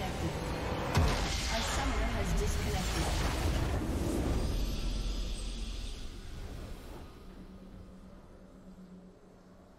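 A triumphant victory fanfare swells and fades.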